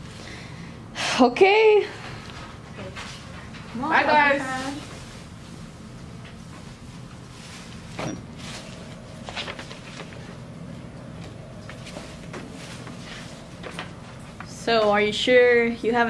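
A young woman speaks up close with animation, in short bursts.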